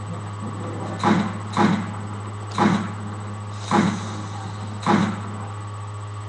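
Gunshots from a video game boom through a television speaker.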